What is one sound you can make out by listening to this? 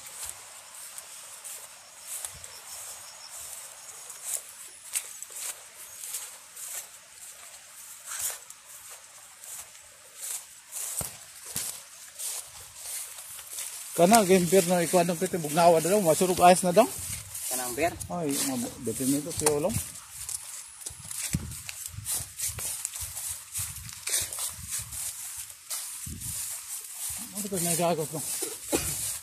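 Footsteps rustle through grass and dry leaves.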